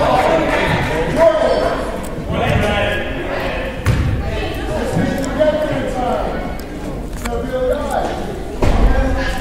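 Children shout and call out in an echoing hall.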